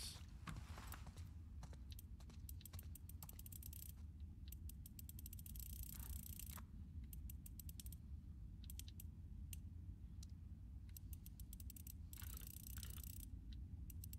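A combination dial clicks rapidly as it is turned.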